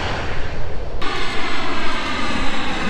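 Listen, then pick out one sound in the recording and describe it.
A distant airliner's engines whine and slowly drop in pitch.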